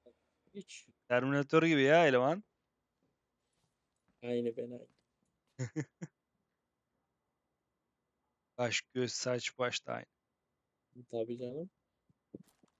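A man speaks in short phrases.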